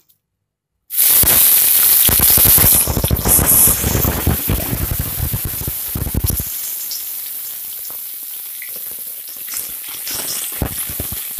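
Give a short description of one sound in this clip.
Onions sizzle loudly in hot oil, then settle to a steady hiss.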